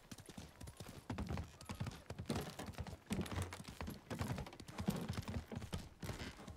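Hooves clatter on a wooden bridge.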